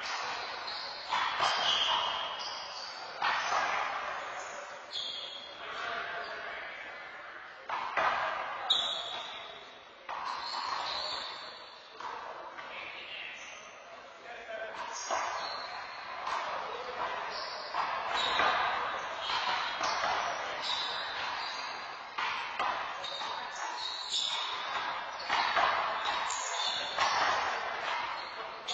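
A rubber ball smacks against a wall and floor again and again, echoing in a large hard room.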